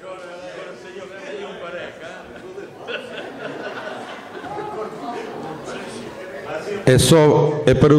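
A crowd of men and women chatters.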